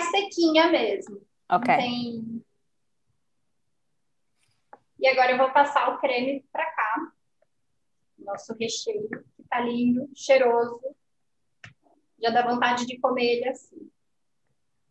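A woman talks calmly, heard through an online call.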